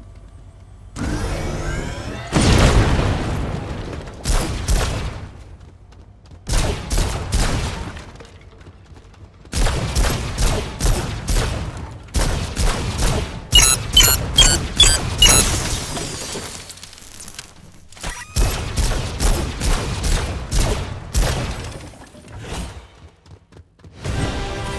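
Objects smash and crackle with electric blasts in bursts.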